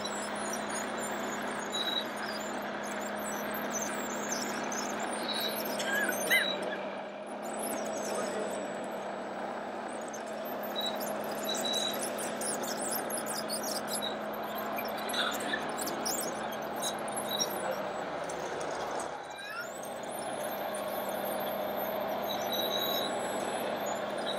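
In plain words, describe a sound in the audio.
Loose earth scrapes and crumbles against a bulldozer blade.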